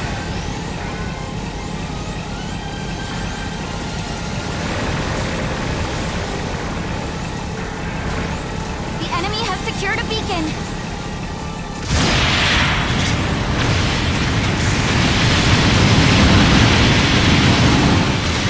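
A robot's thrusters roar steadily.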